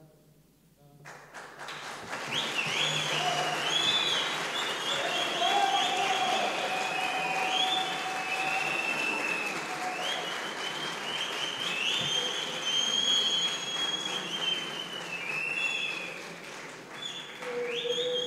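A crowd sings and cheers loudly in a large echoing hall.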